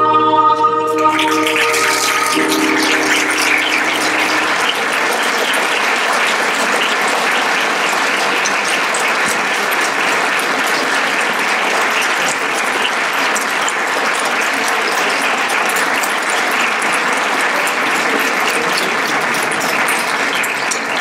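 An audience claps and applauds loudly in a large hall.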